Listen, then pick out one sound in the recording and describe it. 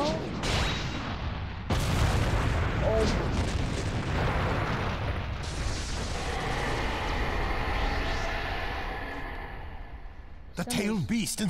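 Rubble crashes and rumbles heavily.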